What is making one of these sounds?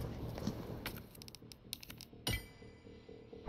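Short electronic clicks tick as menu items are selected.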